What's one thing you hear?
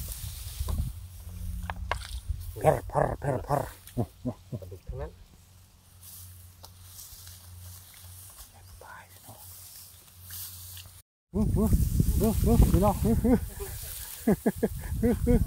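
Dry rice stalks rustle and snap as they are handled.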